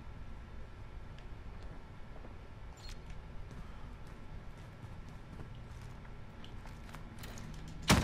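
Footsteps thud softly on hard stairs.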